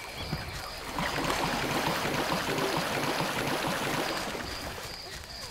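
Water splashes and swishes as a figure wades through it.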